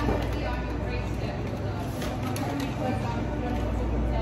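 A hand truck's wheels roll and rattle across a hard floor.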